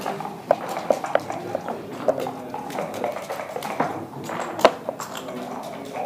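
Game pieces click and clack against a wooden board.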